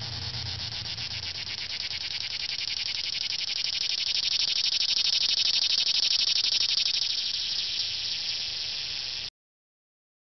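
A cicada buzzes loudly and steadily with a rapid pulsing drone.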